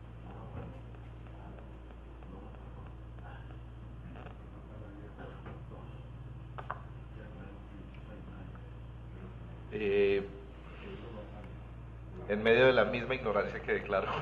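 A crowd of men murmurs and talks quietly in a large room.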